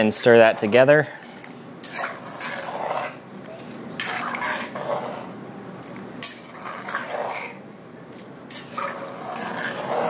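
A spoon stirs a thick sauce in a pot, squelching and scraping.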